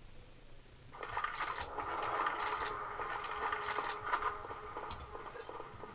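Rapid gunshots crack out in quick bursts.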